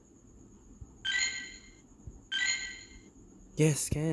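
Short bright electronic chimes ring out twice.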